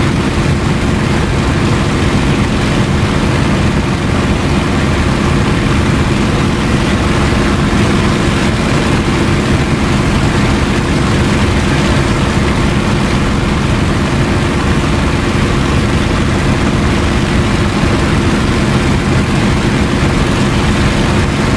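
A propeller plane's engine drones loudly and steadily.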